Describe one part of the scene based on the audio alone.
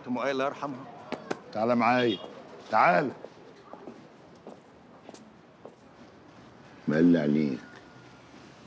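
A man speaks tensely and loudly, close by.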